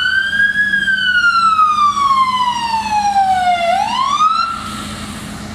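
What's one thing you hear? A fire engine siren wails, sweeping down and back up.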